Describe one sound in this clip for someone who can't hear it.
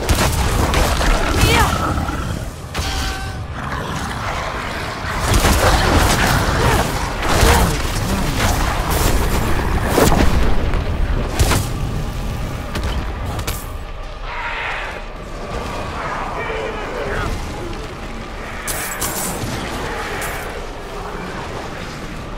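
Fiery explosions boom and crackle.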